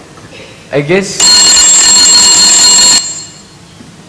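A telephone rings loudly.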